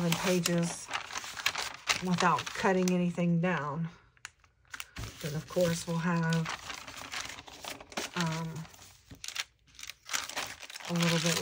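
Sheets of paper rustle and slide against each other.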